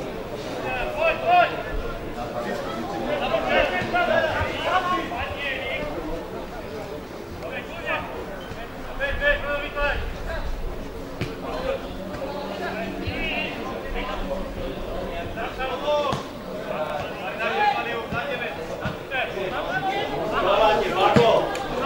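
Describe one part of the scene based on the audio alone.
Young men shout and call out to each other across an open pitch outdoors.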